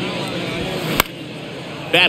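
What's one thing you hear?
A bat cracks against a baseball.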